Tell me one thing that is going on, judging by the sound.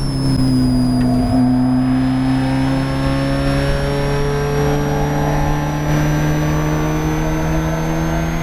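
A four-cylinder Spec Miata race car pulls hard out of a corner, its revs climbing.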